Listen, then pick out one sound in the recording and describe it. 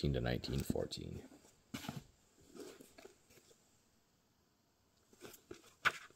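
Hardcover books are handled and knock lightly together.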